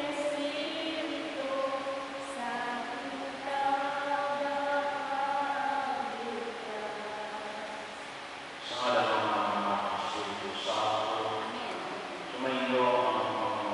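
A man chants in a sustained singing voice through a microphone, echoing in a large hall.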